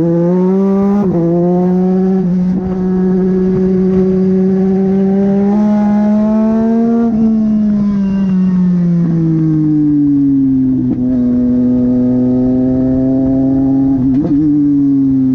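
Gear changes crack sharply between engine notes.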